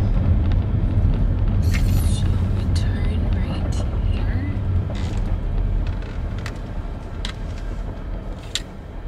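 Tyres rumble over a rough road and slowly fade.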